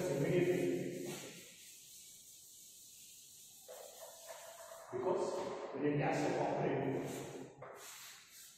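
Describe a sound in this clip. A man speaks calmly, as if teaching, in an echoing room.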